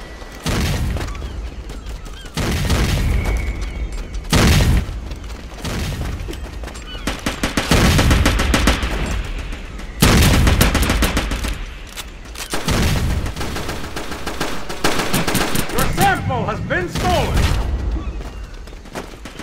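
Guns fire in loud bursts.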